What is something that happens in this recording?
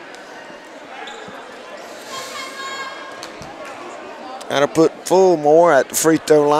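A crowd of spectators murmurs in an echoing gym.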